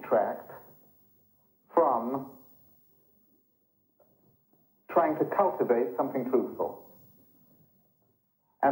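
An older man speaks calmly and close by, in short bursts with pauses.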